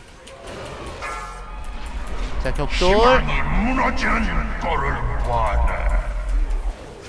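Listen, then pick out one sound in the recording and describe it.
Magic spells whoosh and crackle in battle.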